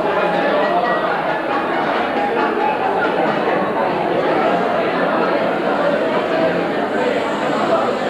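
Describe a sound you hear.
A young woman reads aloud into a microphone through a loudspeaker.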